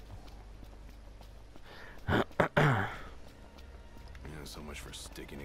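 Footsteps thud quickly on a dirt path.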